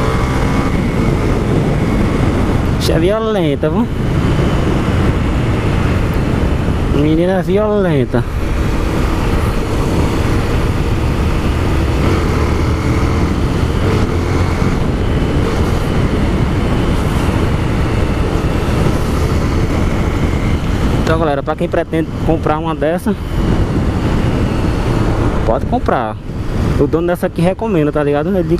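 Wind rushes past a moving motorcycle rider.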